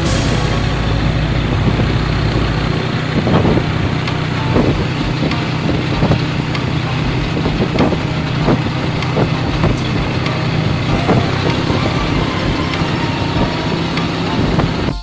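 A small motorbike engine hums steadily up close while riding.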